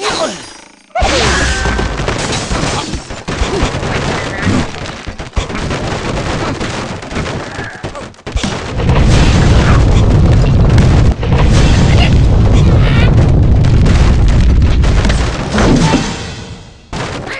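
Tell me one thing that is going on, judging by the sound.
Wooden blocks crash and tumble in a cartoon game.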